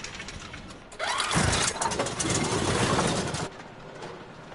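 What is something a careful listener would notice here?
A hand rummages and rattles through a metal drawer.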